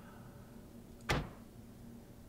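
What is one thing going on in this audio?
A game menu clicks open with a short sharp click.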